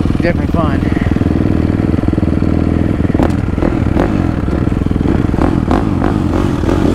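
A motorbike engine idles loudly with a steady rapid putter, close by.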